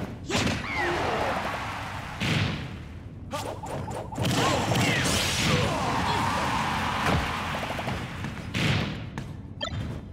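Game explosions burst with loud booms.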